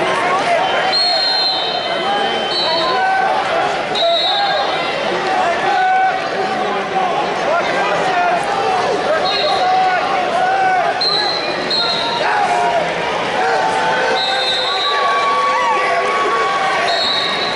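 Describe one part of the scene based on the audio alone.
Referee whistles blow in short sharp blasts.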